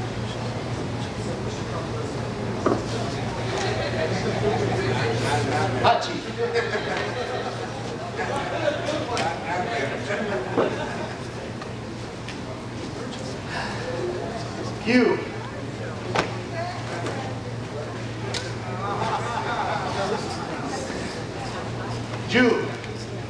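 A crowd murmurs and chatters in a large room.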